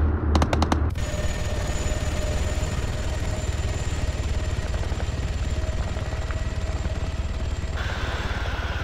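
A helicopter engine whines steadily with a droning rotor.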